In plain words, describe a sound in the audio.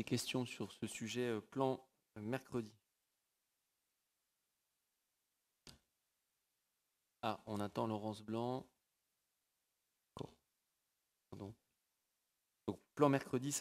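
A man speaks calmly through a microphone in a room with a slight echo.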